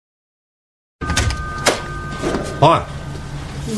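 A door opens.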